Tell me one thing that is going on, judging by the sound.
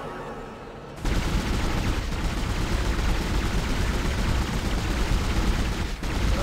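A beam weapon fires with a steady, loud rumbling hiss.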